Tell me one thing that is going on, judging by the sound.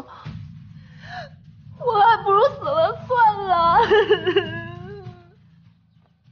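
A young woman sobs and speaks tearfully, close by.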